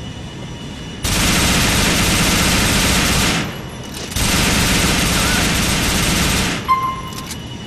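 An assault rifle fires in long automatic bursts.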